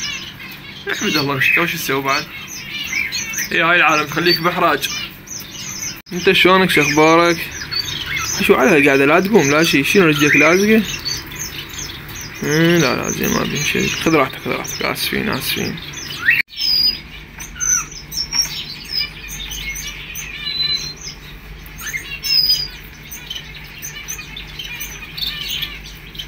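Small birds chirp and twitter nearby.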